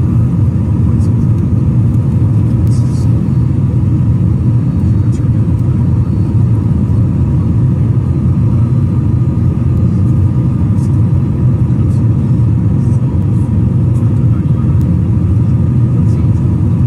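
A jet engine roars steadily in flight.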